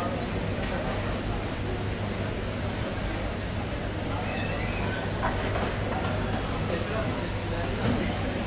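A crowd of men and women chatter steadily nearby.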